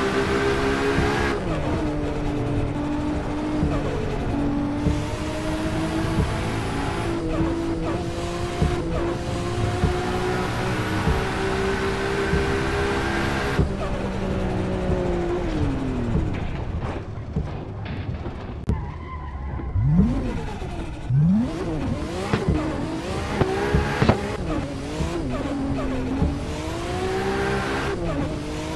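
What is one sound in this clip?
A car engine roars at high revs, rising and falling as gears shift.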